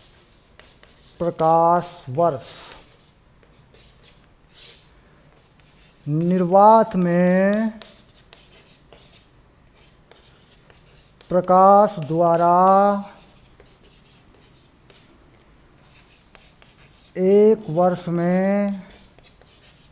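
Chalk scrapes and taps on a board.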